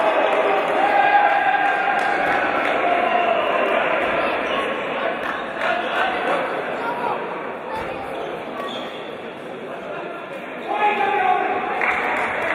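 A crowd of spectators calls out and chatters in a large echoing hall.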